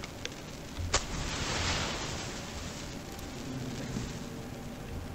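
A flare ignites and hisses.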